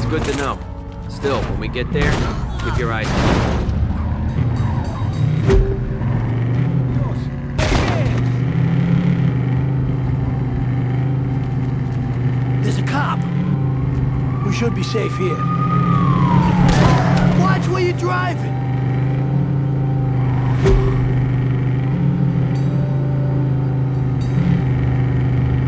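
A car engine hums steadily as it drives.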